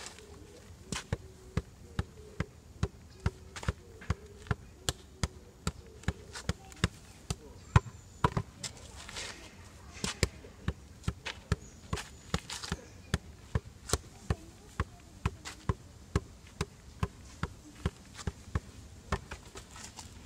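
A rubber ball thumps against a wall and the ground in a quick, steady rhythm.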